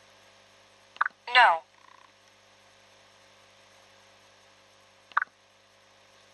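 Short electronic chimes ring out from a handheld game.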